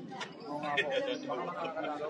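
A woman talks and laughs close by.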